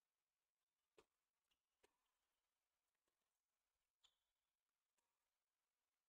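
A tennis ball is hit with a racket a few times, with sharp pops.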